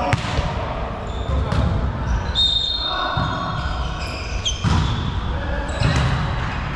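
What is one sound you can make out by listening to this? A volleyball thuds off a player's arms.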